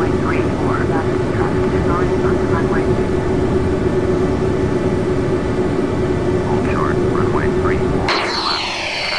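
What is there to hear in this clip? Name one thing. Jet engines rumble low and steady inside a cockpit.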